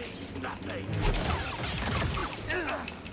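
Blades clash with loud crackling impacts.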